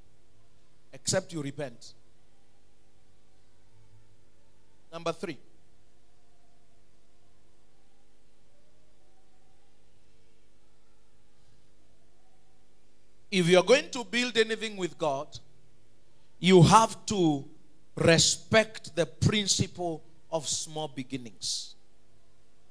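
A man preaches into a microphone over loudspeakers in a hall, pausing between phrases.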